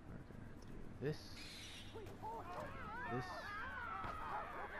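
A bird of prey screeches loudly.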